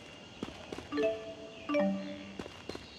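A bright chime plays a short rising jingle.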